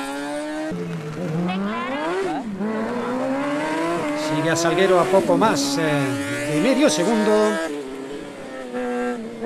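A small racing buggy engine revs hard, rising and falling in pitch.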